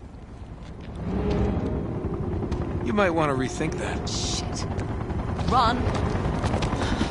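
A helicopter's rotors thump overhead.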